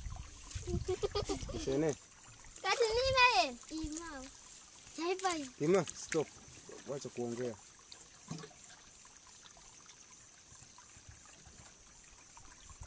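Water splashes and trickles into a plastic container.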